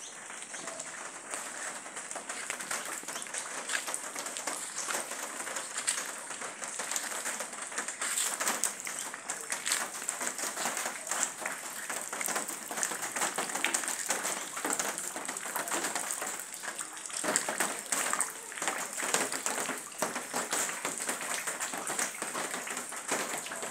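Rain patters steadily on wet ground outdoors.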